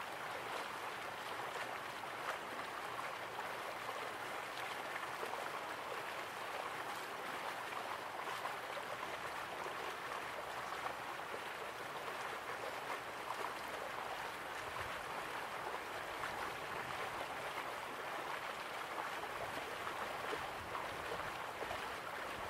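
A waterfall splashes steadily into a pool.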